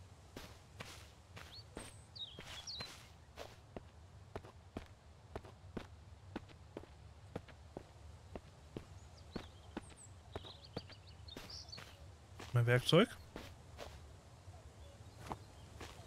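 Footsteps crunch steadily on gravel and dirt.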